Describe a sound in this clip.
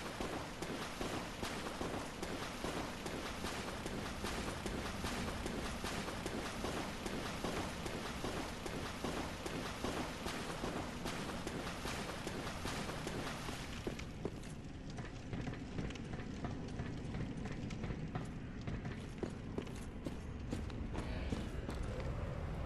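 Heavy armoured footsteps run quickly on stone.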